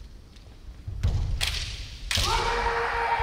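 A bamboo kendo sword cracks against armour in a large echoing hall.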